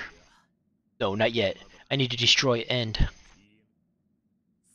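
A second young man answers in a low, serious voice.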